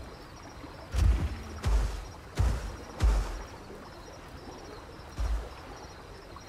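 A large creature's heavy footsteps thud slowly on soft ground.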